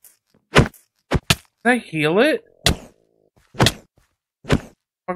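A sword swishes and strikes an animal in quick, repeated hits.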